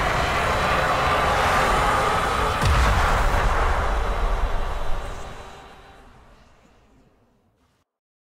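A spaceship's engines roar loudly, then fade away into silence.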